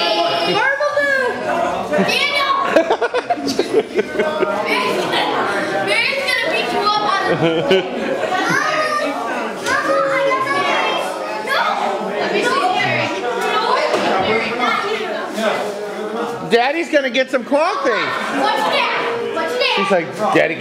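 A group of children sing together close by.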